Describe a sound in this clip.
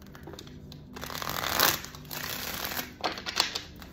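Cards rustle and slide as they are shuffled by hand.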